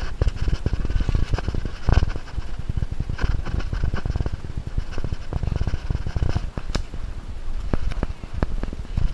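Footsteps crunch and scuff on leaves and roots.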